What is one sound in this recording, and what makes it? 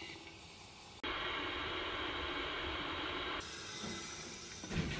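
Water pours and splashes into a bowl.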